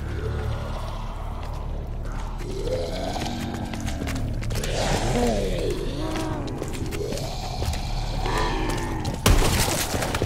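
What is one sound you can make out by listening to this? Zombies growl and moan close by.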